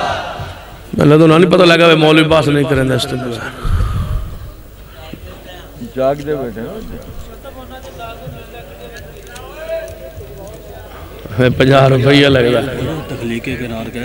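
A man speaks loudly and with fervour into a microphone, heard through loudspeakers.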